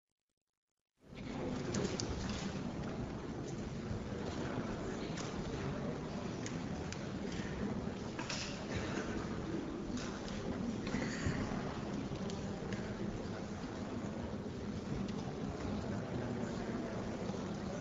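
A crowd of people chatter and murmur in a large echoing hall.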